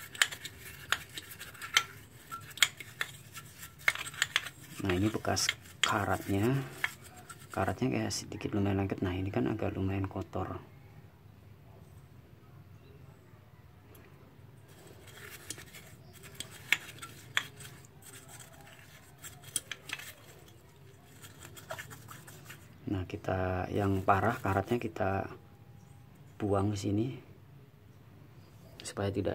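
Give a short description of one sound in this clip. A stiff brush scrubs and scratches against small metal parts.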